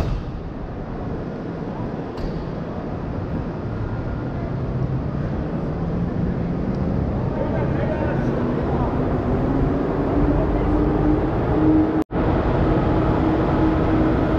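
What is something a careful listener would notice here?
Crowd chatter echoes through a large hall.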